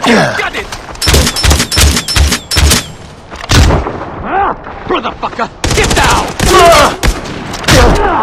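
Gunshots crack in quick bursts close by.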